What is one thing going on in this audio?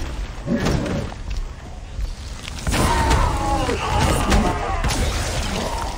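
Heavy blows thud and crack in a fight.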